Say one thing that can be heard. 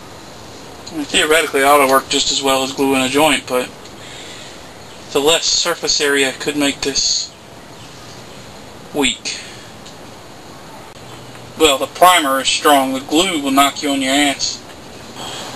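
A man talks calmly up close, in short bursts.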